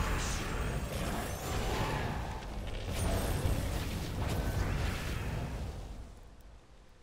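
Electronic game sound effects crackle and burst in quick bursts.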